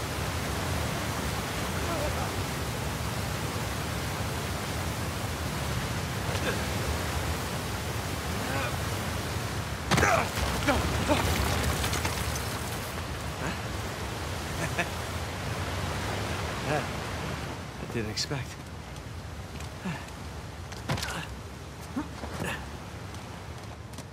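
Surf churns against rocks below.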